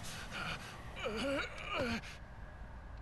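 A young man groans in pain.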